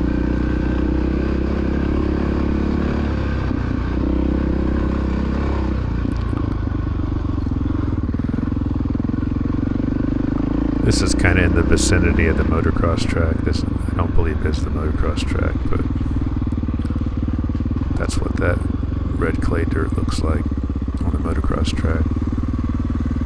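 A dirt bike engine roars and revs up close.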